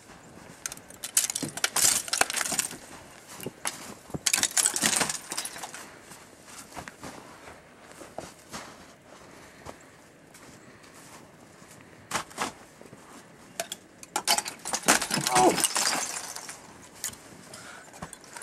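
Icicles crack and snap off a roof edge.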